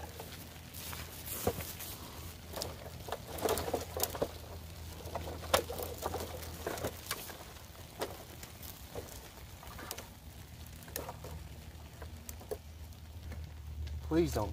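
Dry branches rustle and snap as they are piled onto a fire.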